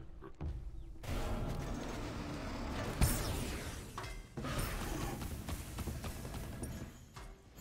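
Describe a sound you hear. Magical whooshes and crackling bursts of effects sound in quick succession.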